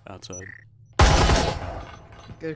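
Gunshots fire in a short, loud burst.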